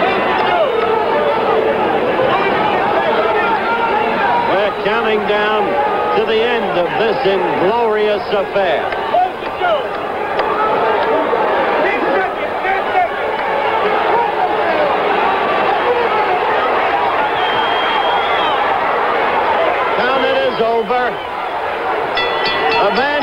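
A large crowd cheers and shouts loudly in a big hall.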